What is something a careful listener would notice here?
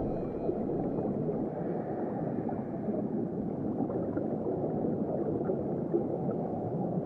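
A swimmer rushes through water, with a steady, muffled, low rumble.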